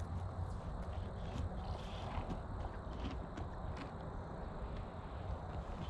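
A horse knocks and rattles a plastic feeder with its muzzle.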